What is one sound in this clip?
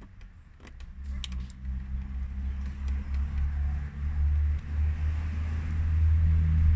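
A car engine starts and revs loudly.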